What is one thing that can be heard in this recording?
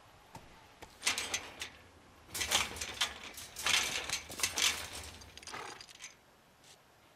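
Metal bars clank and rattle as a man climbs over a fence.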